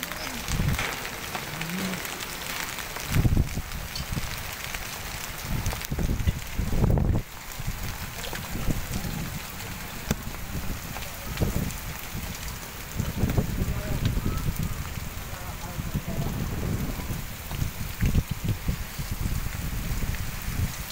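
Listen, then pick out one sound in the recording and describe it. Wind gusts roar outdoors.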